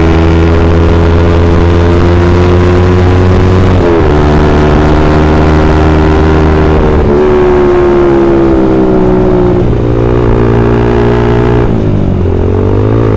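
A motorcycle engine hums loudly up close, shifting pitch as it changes gears.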